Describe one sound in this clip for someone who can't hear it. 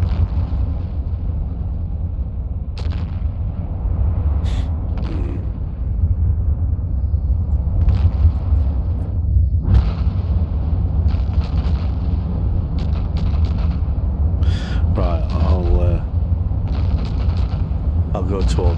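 A deep spaceship engine drones.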